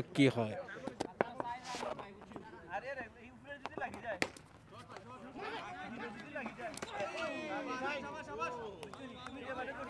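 Hockey sticks clack sharply against a ball now and then.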